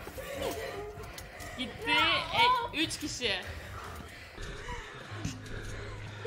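A young girl laughs into a microphone.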